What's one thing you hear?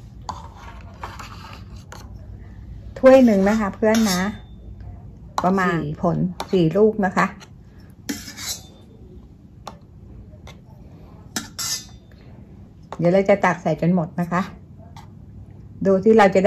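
A metal spoon clinks and scrapes against a plastic cup.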